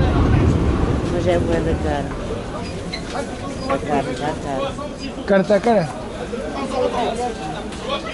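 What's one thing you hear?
A man talks close by.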